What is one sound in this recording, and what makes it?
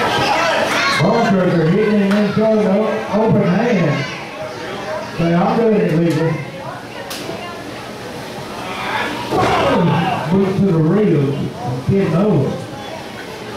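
A crowd chants loudly in a large echoing hall.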